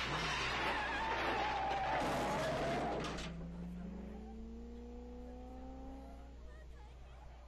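A car engine roars as a car speeds past.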